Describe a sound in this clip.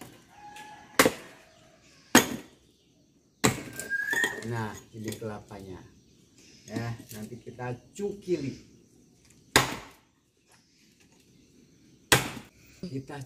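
A machete chops sharply into a coconut husk.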